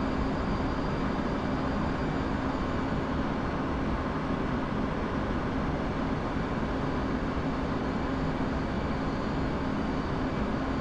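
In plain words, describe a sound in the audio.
A jet engine roars steadily with a low hum of rushing air.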